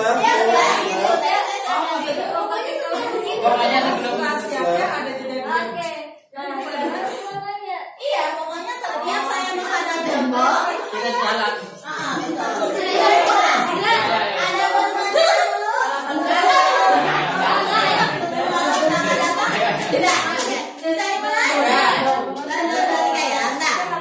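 A group of women and men chat and call out with animation nearby.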